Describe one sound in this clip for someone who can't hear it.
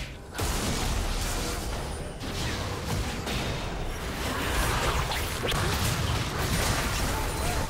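Spell effects crackle and burst in a video game fight.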